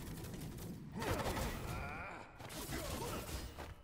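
A heavy weapon strikes with a loud crashing impact.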